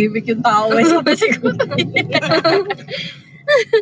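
A young woman laughs close to a phone microphone.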